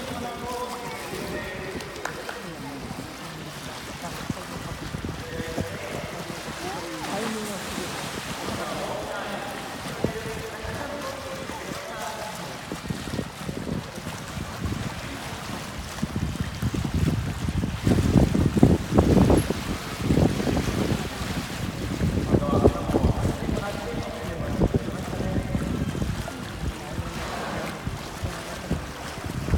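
Water laps and sloshes steadily.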